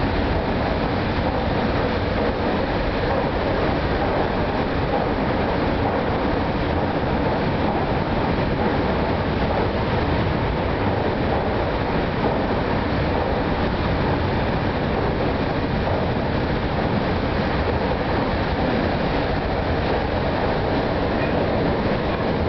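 A train rumbles steadily across a bridge.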